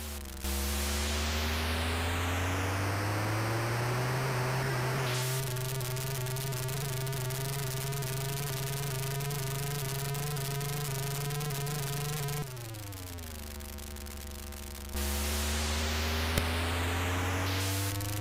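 A buzzy electronic car engine drones and rises in pitch.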